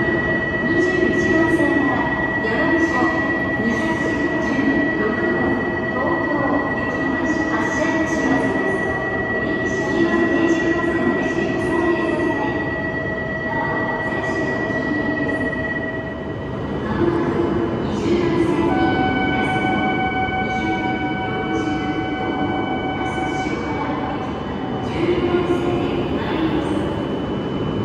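A high-speed train hums and whines steadily at a platform in an echoing station.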